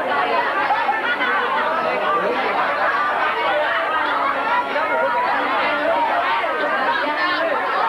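A crowd of young people chatters and shouts excitedly close by.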